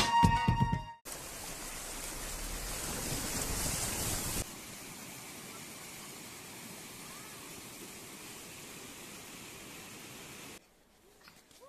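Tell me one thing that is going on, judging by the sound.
Water rushes and splashes loudly over rocks.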